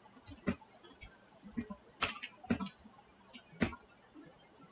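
Keyboard keys click as someone types.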